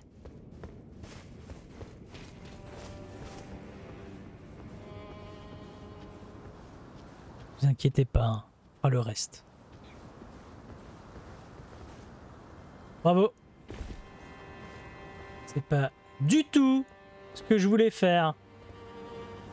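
Footsteps scuff on stone floors.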